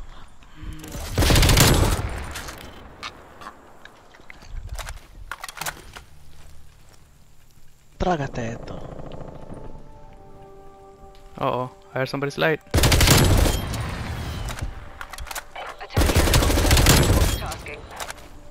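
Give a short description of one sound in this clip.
Rifle shots ring out in loud bursts.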